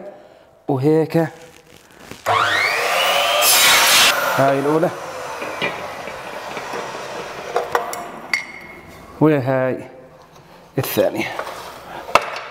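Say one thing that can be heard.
An electric saw's motor whines as it spins up and winds down.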